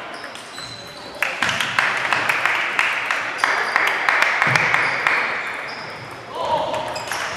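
Table tennis balls click on tables and paddles in a large echoing hall.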